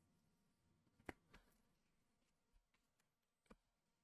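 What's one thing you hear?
Cards tap softly on a table.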